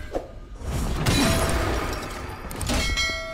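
A heavy blast bursts and scatters debris.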